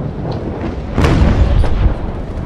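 A cannon fires with a loud boom.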